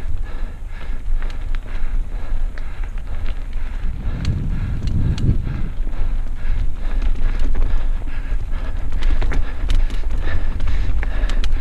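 Mountain bike tyres roll and crunch over a dirt trail.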